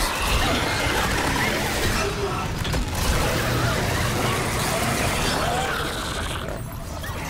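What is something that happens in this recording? A weapon fires with a loud, crackling burst of flames.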